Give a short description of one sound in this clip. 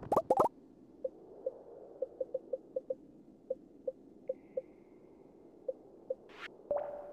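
Short soft clicks from a game menu repeat as items are moved.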